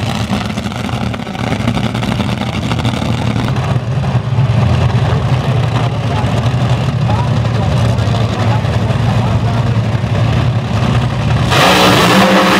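Dragster engines idle with a deep, lumpy rumble close by.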